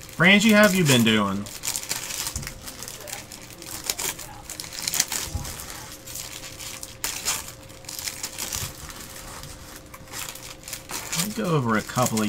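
Foil wrapping crinkles as a pack is torn open.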